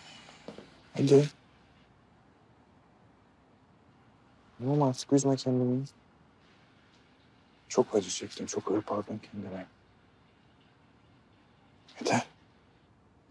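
A man speaks nearby in a low, quiet, earnest voice.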